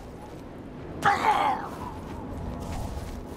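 A magic spell bursts with a sharp whoosh.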